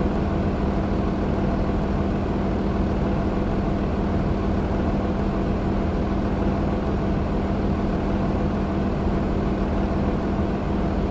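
A city bus's diesel engine hums.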